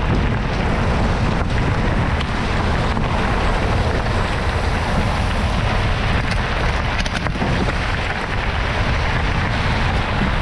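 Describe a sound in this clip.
Bicycle tyres crunch over a gravel trail.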